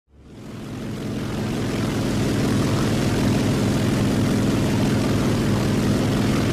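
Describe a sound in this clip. A propeller plane's engine drones steadily, fading in at first.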